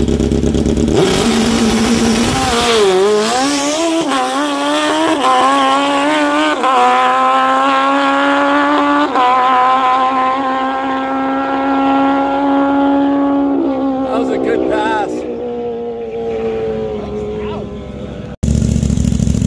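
A drag motorcycle engine roars as the bike launches and speeds away, climbing through gears and fading into the distance.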